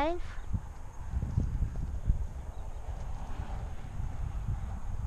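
A horse's hooves thud softly on dirt as it walks.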